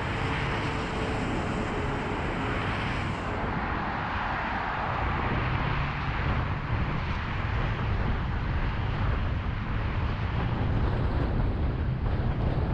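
Tyres hiss on the road surface.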